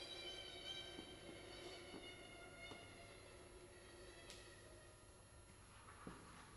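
A viola is bowed in long held tones that fade out, in an echoing hall.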